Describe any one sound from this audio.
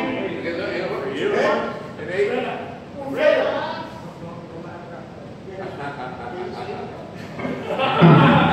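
Several men talk casually nearby.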